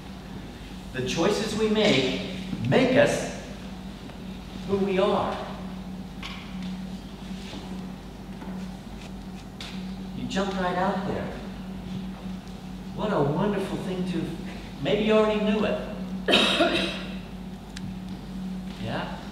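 A man speaks calmly in an echoing hall, with pauses.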